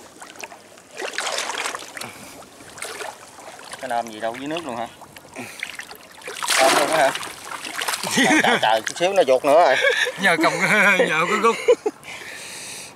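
Water splashes and sloshes.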